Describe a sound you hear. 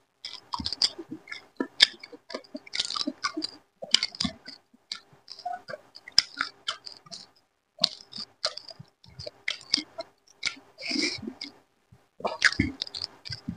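A young man chews food wetly and smacks his lips close to a microphone.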